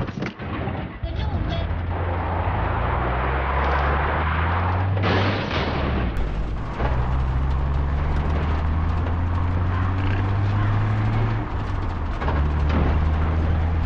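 Tyres rumble over gravel.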